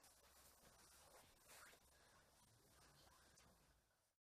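A blanket rustles as it is folded.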